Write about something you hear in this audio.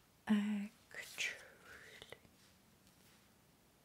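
Paper cards slide and tap onto a table.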